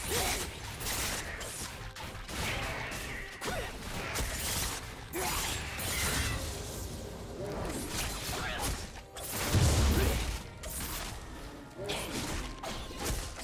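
Magic spell effects whoosh and crackle in a game battle.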